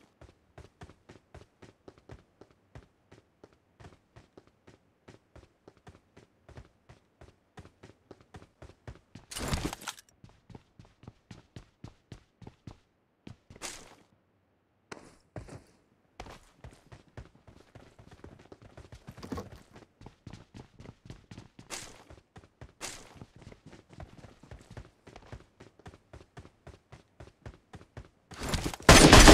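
Quick, steady footsteps patter as a game character runs.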